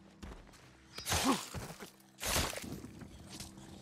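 A blade stabs into a body with heavy, wet thuds.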